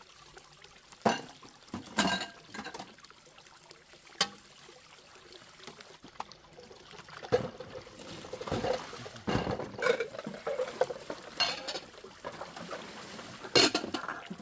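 Dishes clink against each other.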